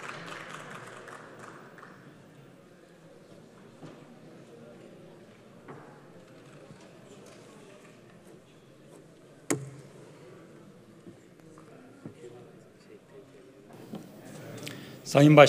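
A crowd of men murmurs quietly in a large echoing hall.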